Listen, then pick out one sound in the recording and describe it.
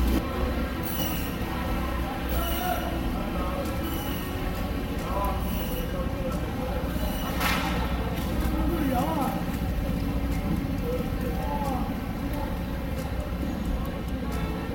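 Men's voices chatter in the background.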